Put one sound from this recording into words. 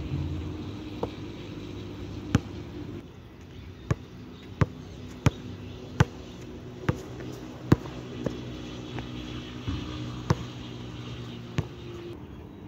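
A basketball bounces sharply on an outdoor court.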